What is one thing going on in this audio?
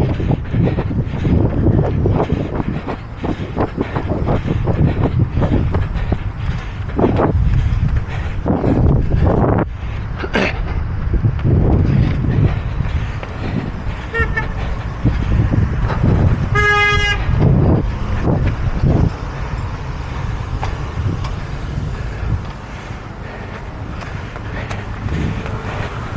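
Cars drive past on a nearby road.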